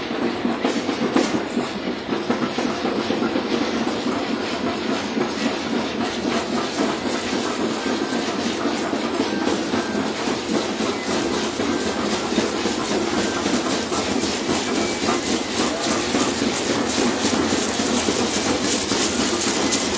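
Dancers' shell rattles shake in a steady rhythm, growing louder as they approach.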